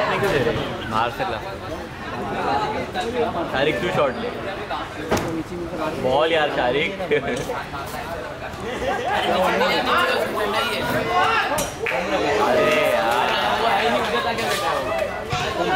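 Young boys shout and call out to each other across an open field.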